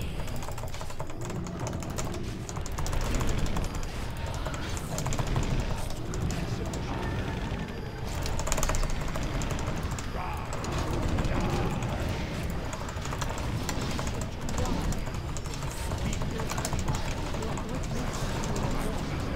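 Fantasy battle sound effects clash and crackle with spells.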